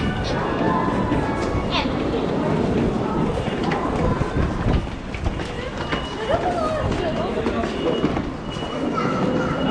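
Footsteps shuffle and tap on stairs.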